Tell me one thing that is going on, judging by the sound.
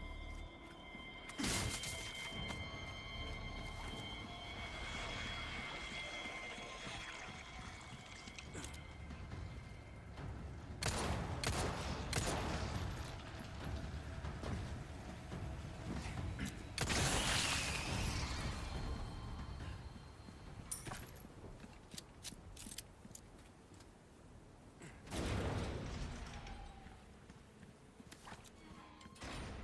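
Footsteps tread on rough ground and wooden planks.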